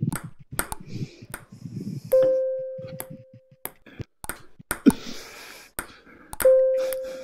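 A ping-pong ball clicks sharply off paddles and a table in a quick rally.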